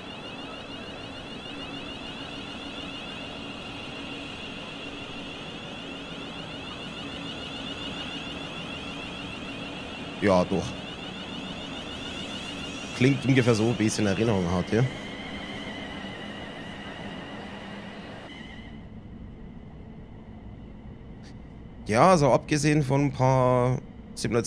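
An electric train hums steadily as it pulls away.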